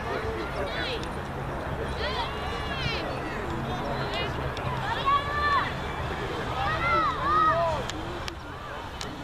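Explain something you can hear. Young girls shout and call out to each other outdoors.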